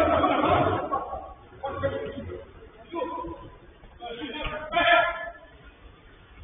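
Young men shout to one another from a distance in a large, open space.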